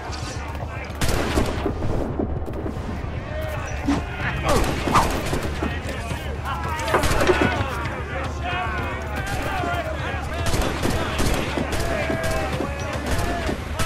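Cannons fire in loud booming blasts.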